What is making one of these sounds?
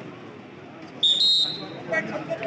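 A referee blows a short whistle.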